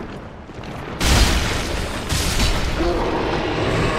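A heavy blade slashes and strikes with loud thuds.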